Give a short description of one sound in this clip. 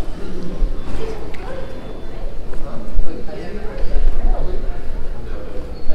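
A woman talks quietly at a distance in a large echoing hall.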